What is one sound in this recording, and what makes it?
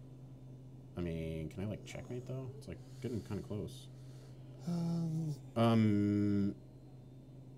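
A man speaks with animation through a microphone, drawing out some words.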